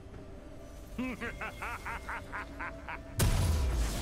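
Quick chiming game sound effects ring out in a rapid series.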